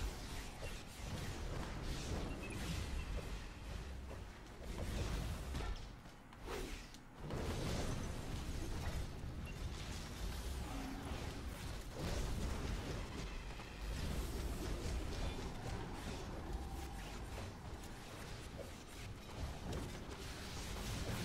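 Game effects of blasts and impacts crash through a superhero fight.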